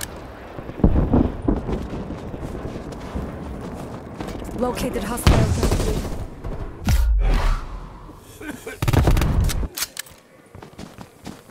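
An automatic rifle fires.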